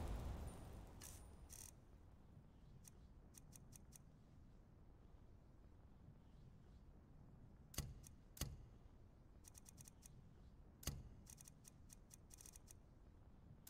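Soft clicks sound as menu items are chosen.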